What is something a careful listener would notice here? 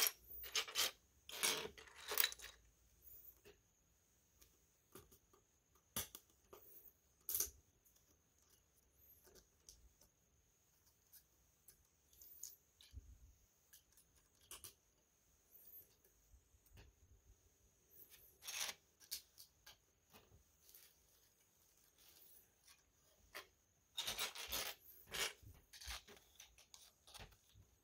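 Loose plastic bricks clatter and rattle on a wooden table.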